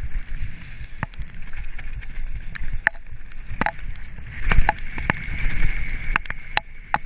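A mountain bike rattles and clatters over a rough dirt trail.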